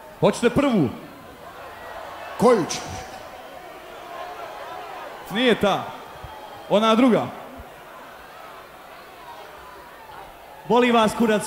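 A man shouts short calls into a microphone, loud over loudspeakers.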